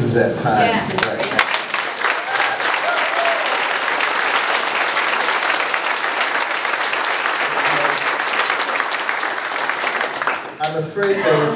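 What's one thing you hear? A crowd applauds loudly in a large room.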